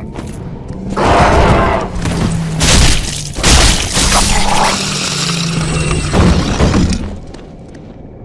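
Weapons clash and thud loudly in a short fight.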